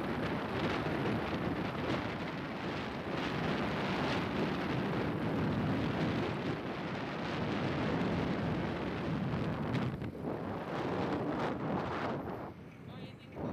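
Wind rushes and buffets loudly against the microphone outdoors.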